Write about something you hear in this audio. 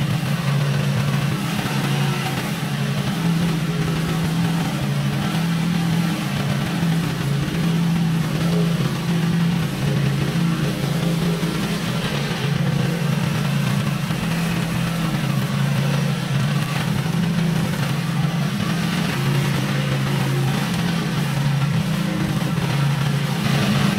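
Mower blades cut through tall grass.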